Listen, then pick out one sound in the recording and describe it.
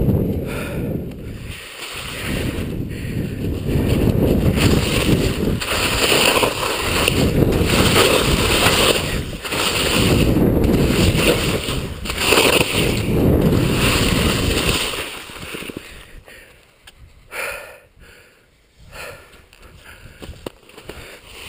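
Skis carve and scrape through snow.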